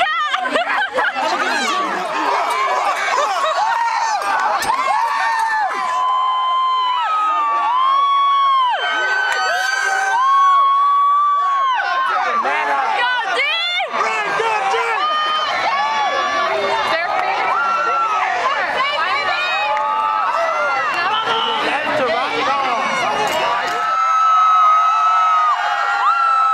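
A crowd of young men and women cheers and screams outdoors.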